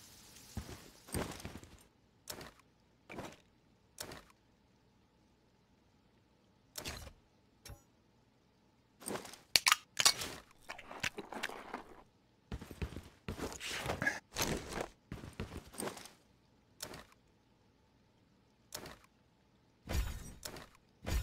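Short clicks and gear rustles sound in bursts as inventory items are moved in a game.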